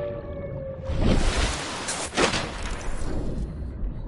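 Water bubbles and churns around a diver underwater.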